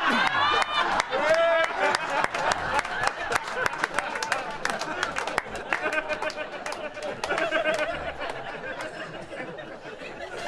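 An elderly man laughs loudly nearby.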